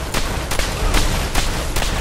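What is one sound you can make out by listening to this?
A fire roars and crackles.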